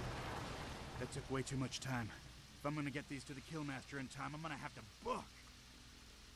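A man speaks in a deep, gruff voice, close by.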